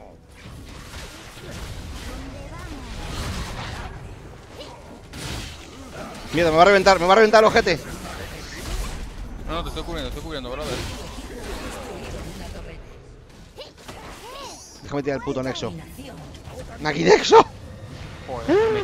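Spells and weapons clash in a fast game battle.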